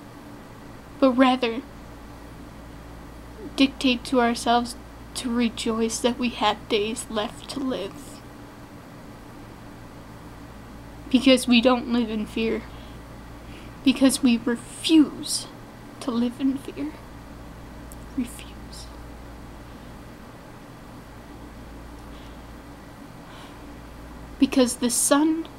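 A young woman speaks close to the microphone in a slow, weary voice, with long pauses.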